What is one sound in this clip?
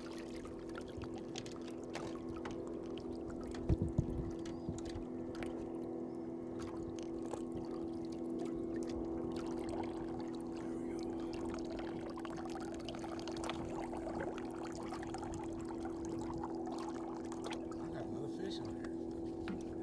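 An outboard motor hums steadily at low speed.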